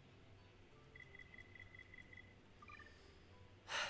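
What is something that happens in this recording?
Short electronic menu blips chime.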